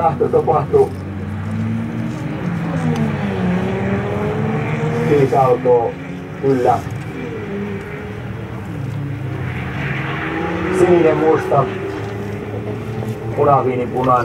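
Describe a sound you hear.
Racing car engines roar and rev hard, rising and dropping in pitch with each gear change.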